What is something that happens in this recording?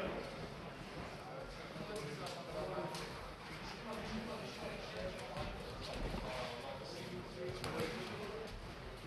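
Boxing gloves thump against a body in quick blows.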